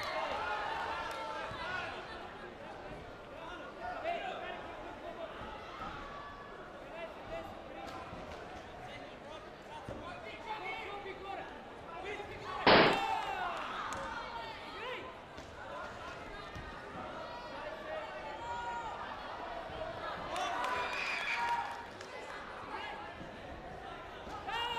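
Several men and women talk and call out throughout a large echoing hall.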